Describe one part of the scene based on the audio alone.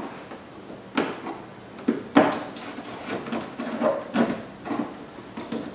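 A tool clicks and taps against plastic.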